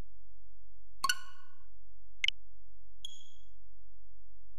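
Short electronic menu chimes and clicks sound.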